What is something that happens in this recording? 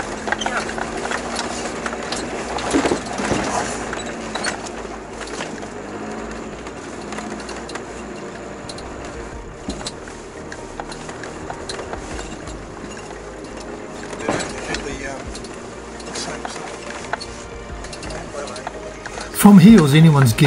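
Tyres crunch and rumble over loose stones.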